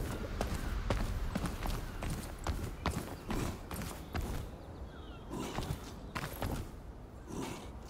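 Footsteps patter on stone steps.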